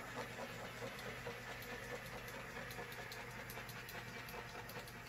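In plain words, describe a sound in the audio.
A small tool scrapes and taps repeatedly along a wet surface.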